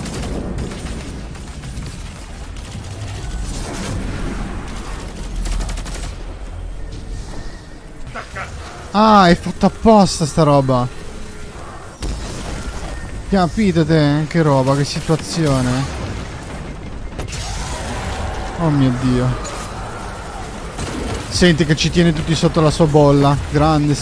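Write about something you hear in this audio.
Gunfire and blasts from a video game crackle.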